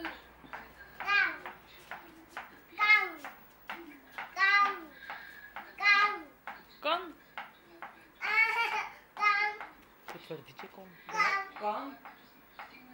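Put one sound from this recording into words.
A toddler boy squeals and babbles close by.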